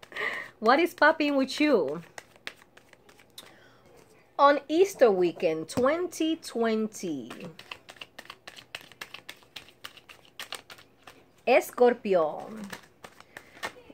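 Cards shuffle and riffle with quick soft flicks.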